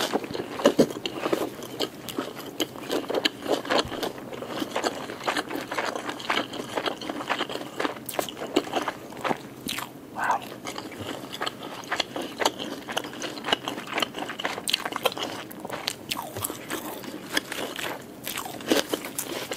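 A woman chews food wetly and loudly close to a microphone.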